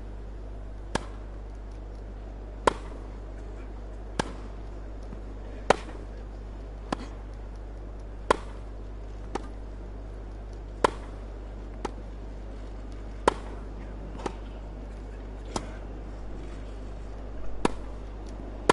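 A tennis ball bounces on grass.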